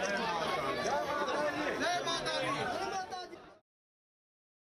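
Several men talk over one another close by in a crowd.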